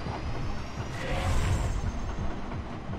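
A laser beam fires with a rushing whoosh.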